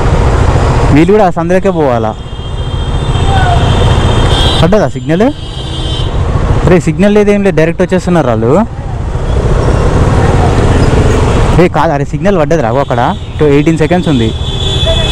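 Vehicle horns honk repeatedly in busy traffic.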